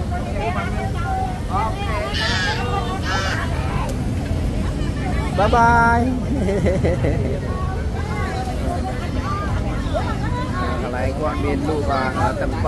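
A man talks with customers nearby.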